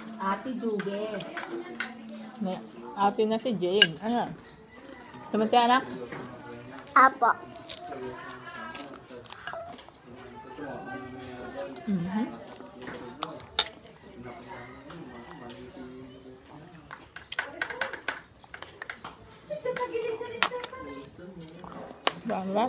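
A fork and spoon clink against a plate.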